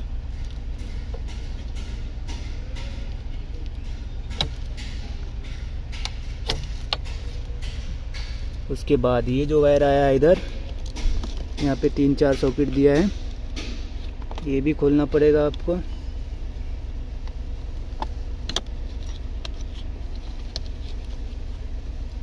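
Plastic connectors click and rattle as they are handled.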